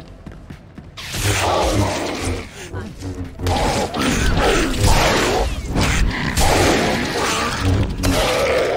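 Lightsabers hum and clash in a fast fight.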